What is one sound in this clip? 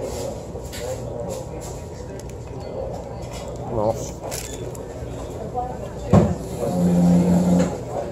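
A man chews food noisily up close.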